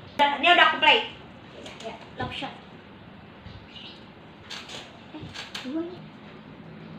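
Young girls speak and laugh with animation close by.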